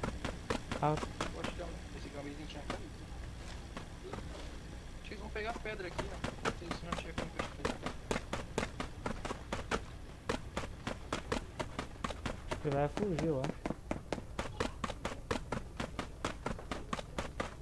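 Quick footsteps run over ground.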